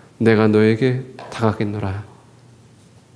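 A man speaks loudly and with emphasis through a microphone in a large, echoing room.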